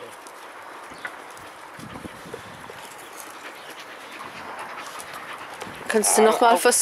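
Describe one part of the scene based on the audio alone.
Dogs sniff and pant close by.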